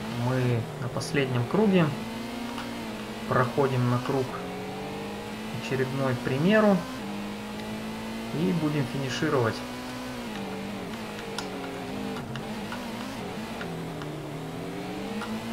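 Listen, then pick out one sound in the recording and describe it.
A racing car engine drones and revs up as the car speeds up.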